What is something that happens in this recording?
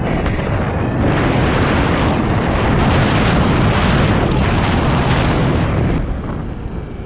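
Wind rushes loudly past the rider at speed.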